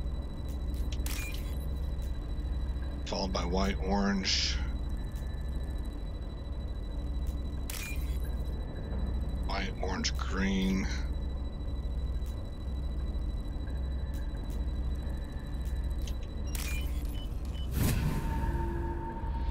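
Short electronic blips and chimes sound from a computer interface.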